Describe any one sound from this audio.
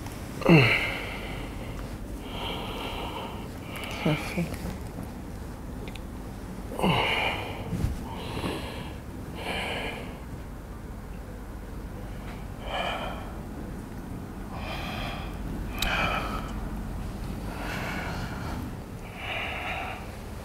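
A newborn baby cries in short bursts close by.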